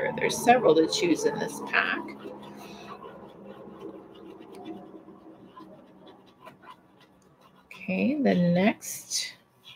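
An oil pastel scratches softly on paper.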